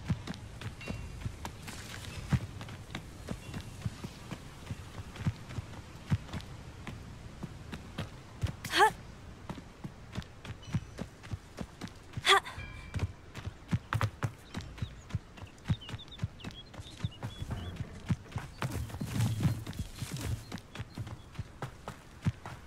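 Quick footsteps run through grass.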